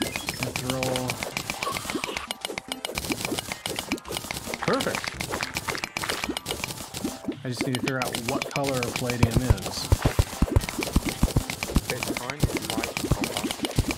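A pickaxe chips at rock with quick, repeated taps.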